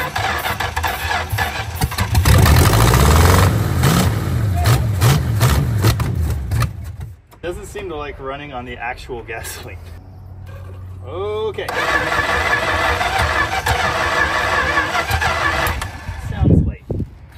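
A car engine sputters and runs roughly outdoors.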